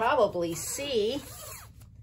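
Plastic film rustles under a hand.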